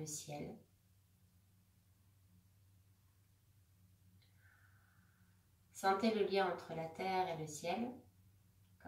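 A woman speaks calmly and softly close to a microphone, with long pauses.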